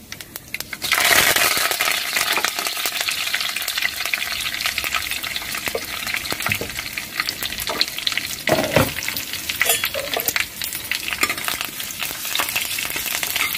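Fresh leaves hiss loudly as they drop into hot oil.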